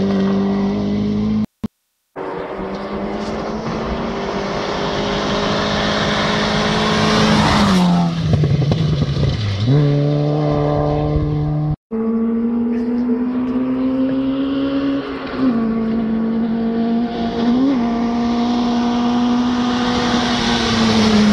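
A rally car engine roars at high revs, drawing closer and rushing past with a drop in pitch.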